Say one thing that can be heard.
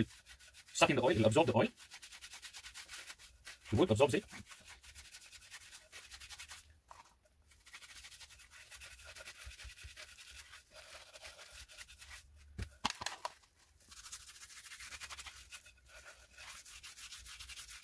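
Hands rub and slap against a wooden club.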